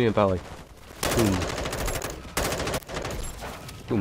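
A rifle fires in rapid bursts.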